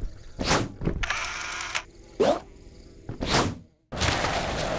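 Air whooshes past in quick swooping bursts.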